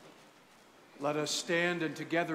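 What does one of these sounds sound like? A man chants loudly through a microphone in a large echoing hall.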